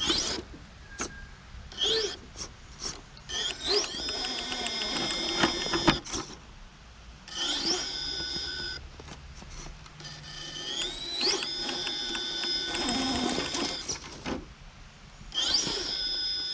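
Plastic tyres scrape and knock against rock.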